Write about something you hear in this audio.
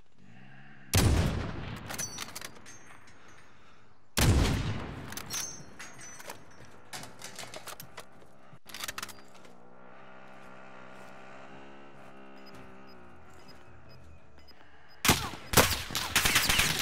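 A sniper rifle fires loud, sharp shots that echo.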